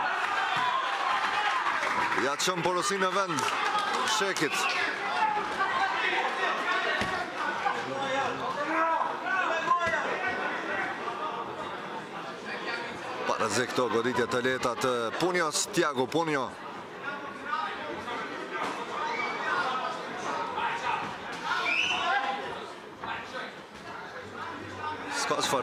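A crowd murmurs and shouts encouragement.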